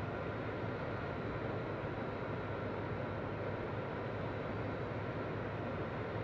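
Jet engines hum with a steady, low roar.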